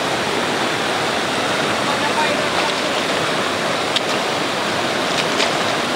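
A shallow stream rushes and splashes loudly over rocks.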